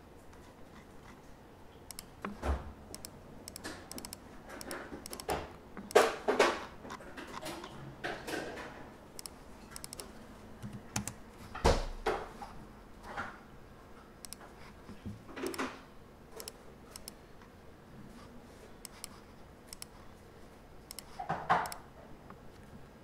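Fingers tap quickly on a laptop keyboard, close by.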